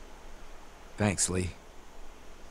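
A man speaks calmly and briefly.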